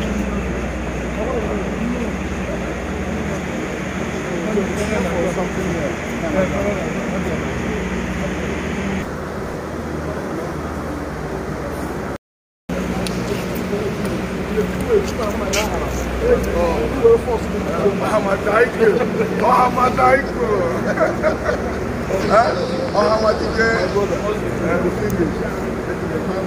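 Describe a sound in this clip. Several men talk and chatter nearby.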